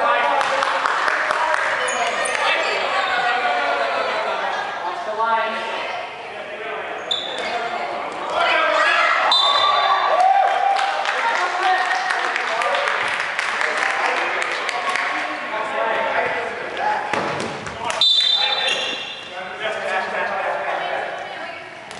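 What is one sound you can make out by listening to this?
A volleyball thumps off a player's hands.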